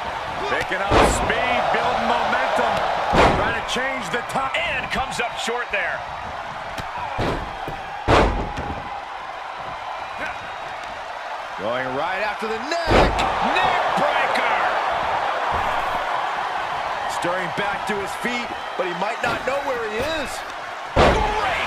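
Heavy bodies slam hard onto a wrestling mat with loud thuds.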